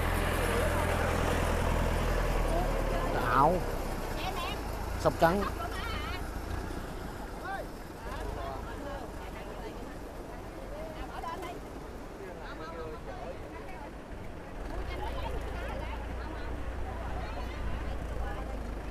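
Women talk with animation close by.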